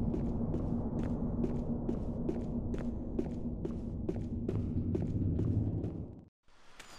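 Footsteps tap steadily on a hard floor in a large echoing hall.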